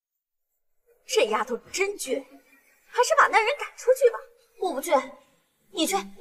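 A woman speaks sharply and scornfully nearby.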